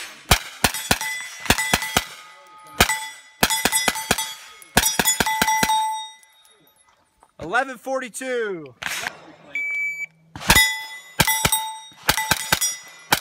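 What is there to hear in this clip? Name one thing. Steel targets ring after hits.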